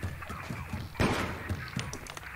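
A heavy door bangs open.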